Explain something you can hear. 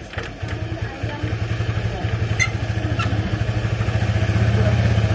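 A scooter engine idles with a steady, fast putter.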